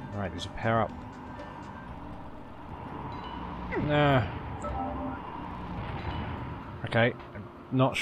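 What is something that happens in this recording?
Short bright chimes ring out as items are picked up in a video game.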